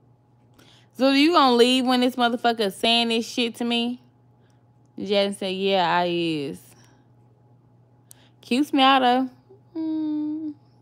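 A young woman sings loudly in a high, wavering voice close by, in short bursts.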